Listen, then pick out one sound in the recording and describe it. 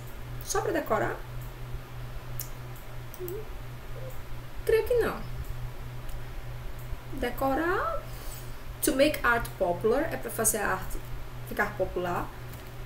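A woman speaks calmly into a microphone, explaining with pauses.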